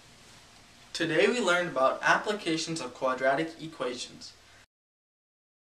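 A young man speaks calmly and clearly to the listener, close by.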